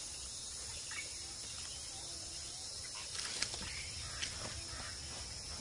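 Leaves rustle as a monkey moves through the branches.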